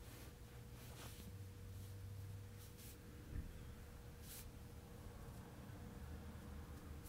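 Hands rub and press on cloth with soft rustling.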